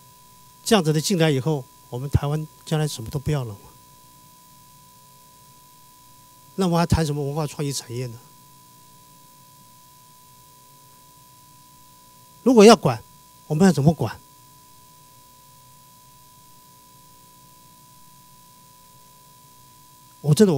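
An older man speaks into a microphone in short bursts with pauses.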